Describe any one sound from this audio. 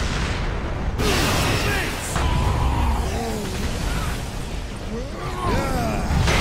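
A jet pack roars with a rushing blast.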